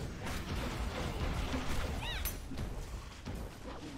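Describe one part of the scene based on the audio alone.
Magic blasts crackle and burst in a video game.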